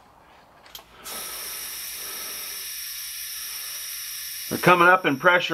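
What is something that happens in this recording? Water hisses steadily through a pipe.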